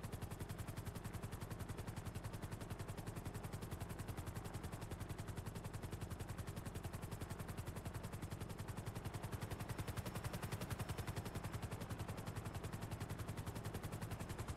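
A helicopter's rotor blades chop rapidly and steadily.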